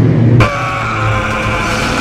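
A young man screams loudly.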